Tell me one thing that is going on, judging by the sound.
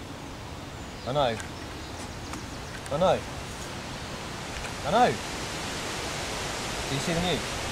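Leaves rustle softly in a light breeze outdoors.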